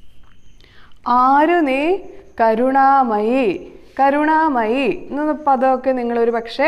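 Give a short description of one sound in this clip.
A young woman speaks clearly and calmly into a close microphone.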